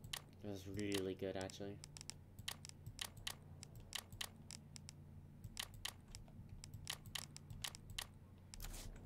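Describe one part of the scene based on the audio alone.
Short menu clicks tick sharply again and again.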